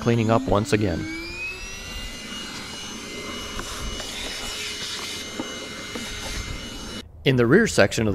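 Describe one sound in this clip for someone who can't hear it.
A small vacuum cleaner motor whirs up to speed and runs steadily.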